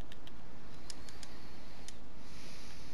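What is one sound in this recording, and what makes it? A menu clicks softly several times.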